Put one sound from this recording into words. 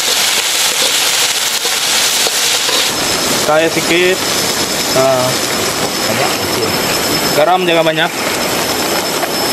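Greens sizzle and crackle in a hot wok.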